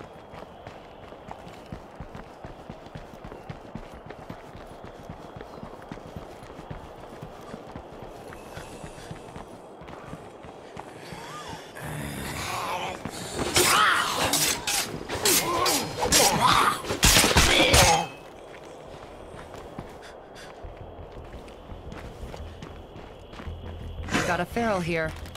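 Footsteps run along a paved road.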